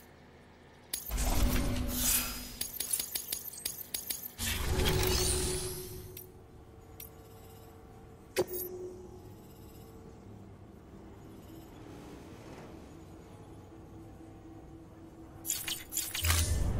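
Soft chimes sound as menu options change.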